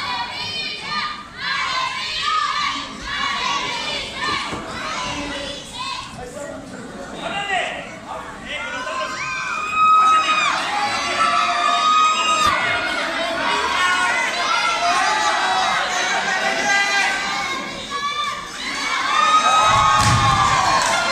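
A crowd shouts and cheers loudly in a large echoing arena.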